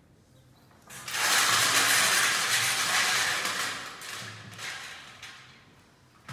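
A woman lets out a loud, rushing roar into a metal tube.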